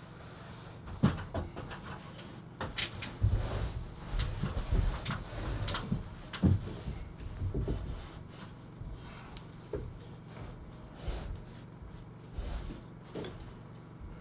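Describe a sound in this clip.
Wooden beams knock and thump against each other as a man shifts them.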